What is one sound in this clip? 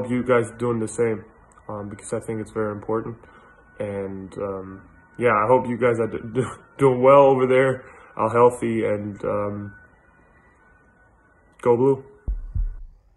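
A young man speaks calmly and close to the microphone.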